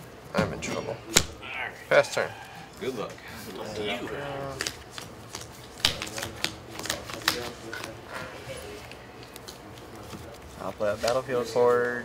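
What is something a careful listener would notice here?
Playing cards are laid down on a table with soft taps.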